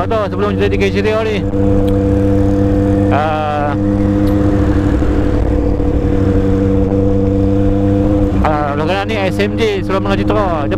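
Wind rushes past a moving motorcycle.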